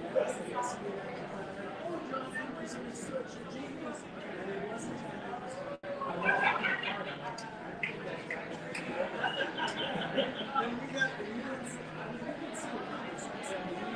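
Several men and women chat at once at a slight distance, with a mild echo.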